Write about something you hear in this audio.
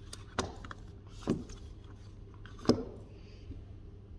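A book thumps down onto a table.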